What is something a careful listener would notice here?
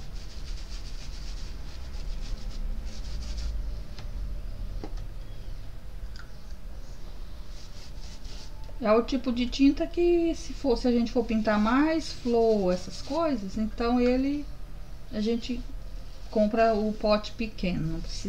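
A paintbrush brushes softly across a canvas.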